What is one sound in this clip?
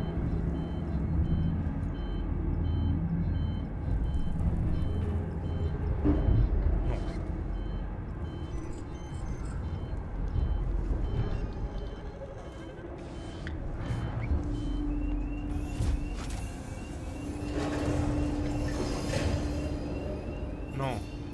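A low mechanical hum rumbles steadily throughout.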